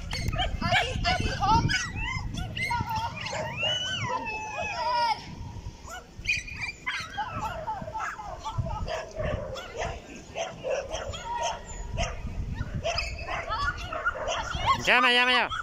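A woman calls out commands to a dog outdoors.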